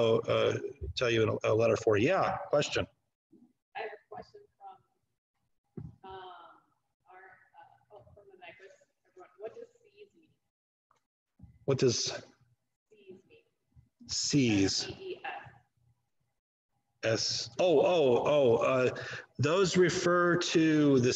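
A man lectures calmly over an online call, with pauses.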